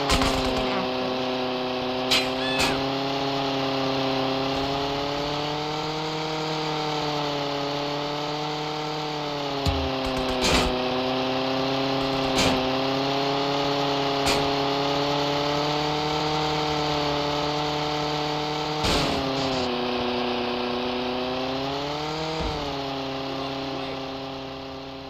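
A small model plane engine buzzes steadily, its pitch rising and falling.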